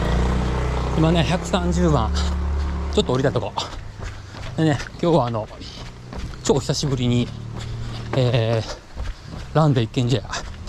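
A man speaks close to the microphone, a little out of breath.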